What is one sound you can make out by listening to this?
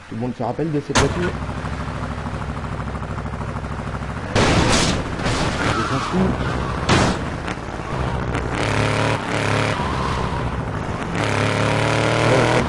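A car engine starts and rumbles steadily as the car drives off.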